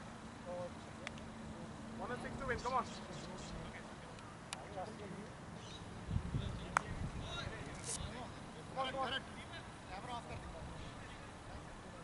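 Men talk casually at a distance.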